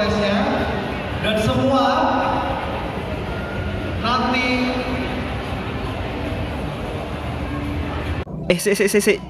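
A man speaks with animation through a microphone over loudspeakers.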